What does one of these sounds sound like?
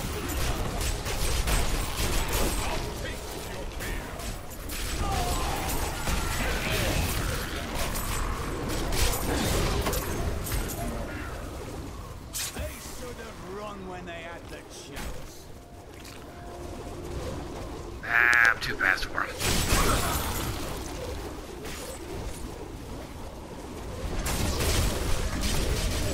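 Game spell blasts and explosions crash and roar throughout.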